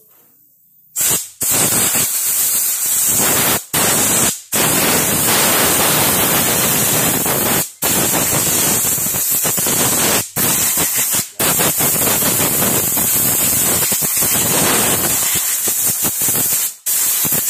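An aerosol can sprays in long, loud hissing bursts.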